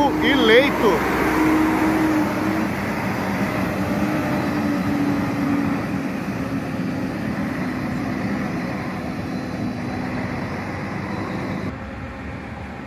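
A bus engine rumbles as the bus pulls away and slowly fades into the distance.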